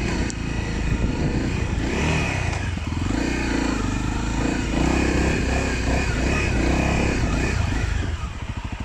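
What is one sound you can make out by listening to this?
Tyres crunch over rough dirt and grass.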